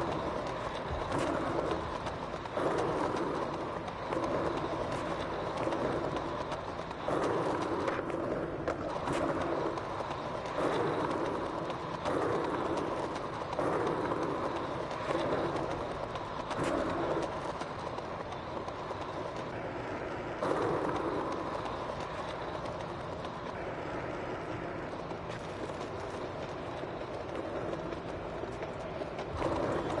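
Skateboard wheels roll and rumble over pavement.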